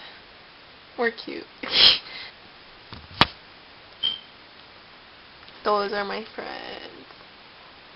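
A young woman speaks softly close to the microphone.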